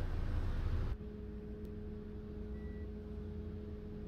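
A bus engine hums quietly and steadily from inside the cab.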